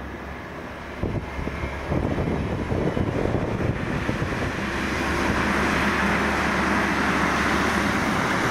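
A train roars past close by, growing louder.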